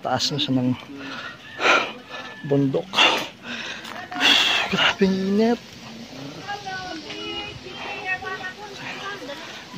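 A young man talks with animation close to the microphone, outdoors.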